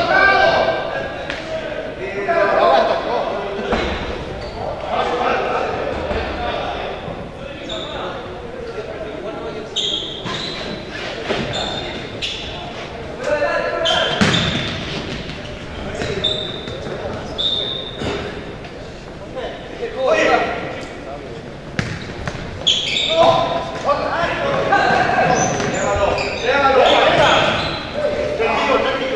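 A ball thumps off players' feet.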